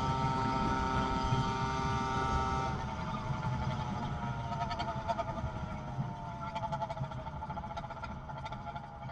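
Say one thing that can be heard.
Bicycle tyres roll on asphalt.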